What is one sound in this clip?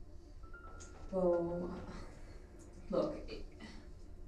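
A young woman answers quietly, close by.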